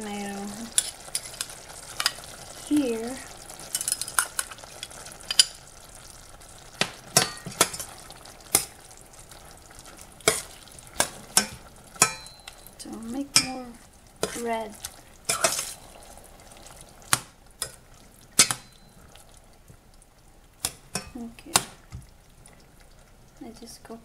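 A metal spoon clinks and scrapes against a pot while stirring.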